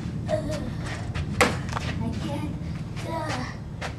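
A basketball thuds against a backboard.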